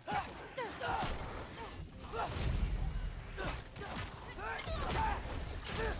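A magic blast roars and crackles.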